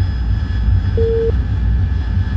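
A short electronic beep sounds once.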